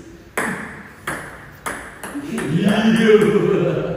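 A ping pong ball bounces on a table.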